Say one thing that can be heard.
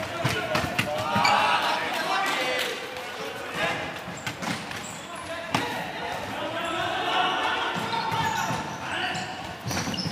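Players shout and call out across a large echoing hall.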